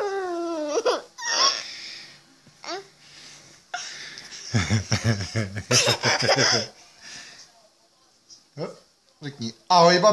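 A young girl squeals and talks playfully close by.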